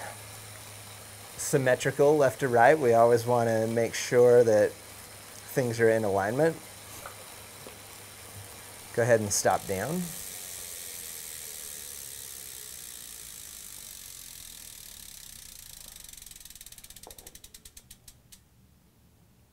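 Bicycles whir steadily on indoor trainers.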